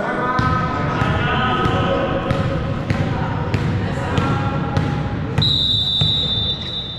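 A volleyball is hit and bounces with sharp smacks in a large echoing gym.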